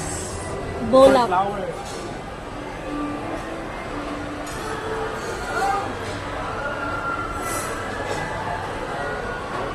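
Serving tongs scrape and clink against a glass dish.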